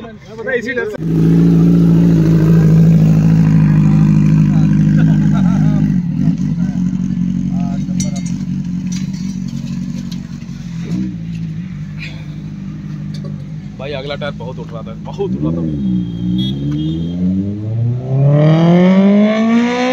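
A motorcycle engine starts and rumbles steadily close by.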